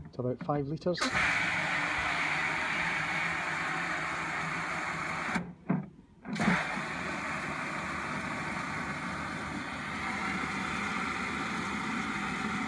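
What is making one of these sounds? Water sprays from a hose nozzle into a plastic watering can with a steady rushing hiss.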